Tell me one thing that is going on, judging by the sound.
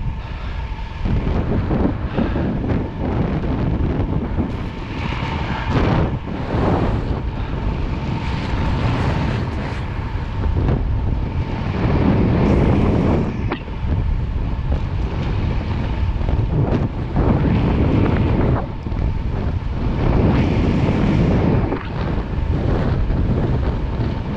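Bicycle tyres hum on the road.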